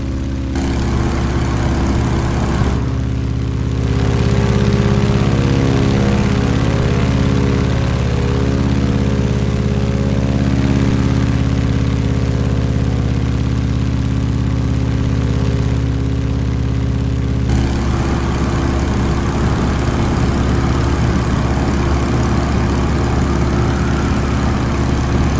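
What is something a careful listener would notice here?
Wind rushes past an open cockpit.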